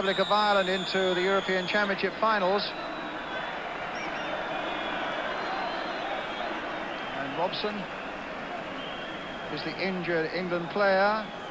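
A stadium crowd murmurs in the distance.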